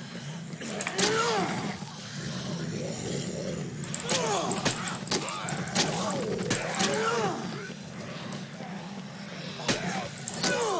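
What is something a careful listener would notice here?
Heavy blows thud and smack repeatedly.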